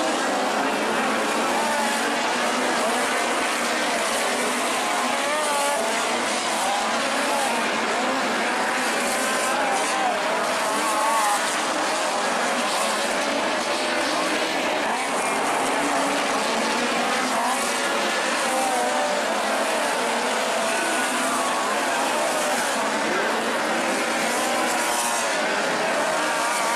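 Race car engines roar around a dirt track, rising and falling as they pass.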